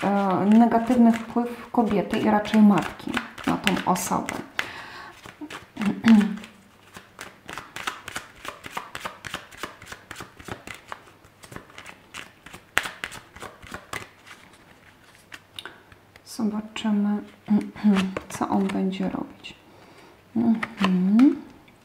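Playing cards riffle and flutter quickly as they are shuffled.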